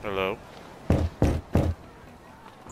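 A hand knocks on a wooden wall.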